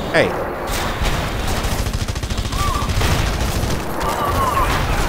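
A gun fires in rapid bursts with deep booms.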